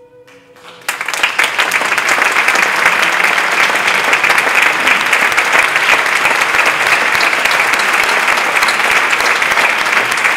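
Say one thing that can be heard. An audience claps loudly in a large hall.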